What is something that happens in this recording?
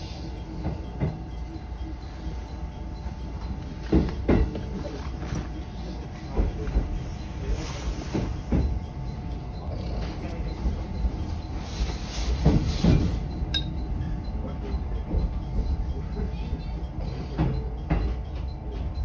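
Train wheels clack over rail joints and points.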